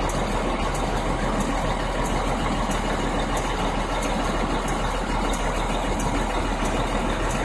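Traffic rumbles steadily at a distance.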